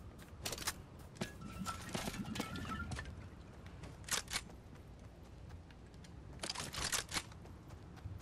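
Short bright chimes ring out as items are picked up.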